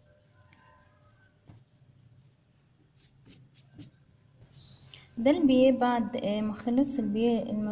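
Hands smooth and rustle fabric on a table.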